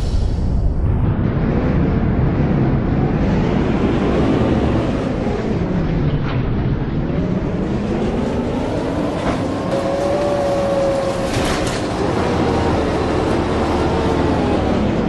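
A bus engine whines louder, rising and falling in pitch as the bus drives off.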